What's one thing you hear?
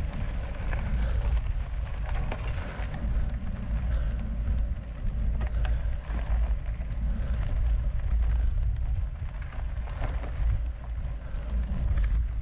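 Wind rumbles steadily across a close microphone outdoors.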